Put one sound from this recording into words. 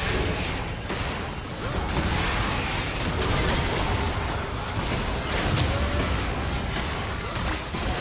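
Magic spells crackle and burst in a hectic video game battle.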